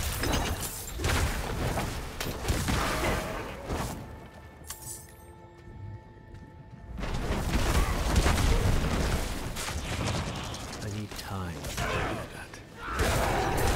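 Fiery blasts and combat effects crackle and boom.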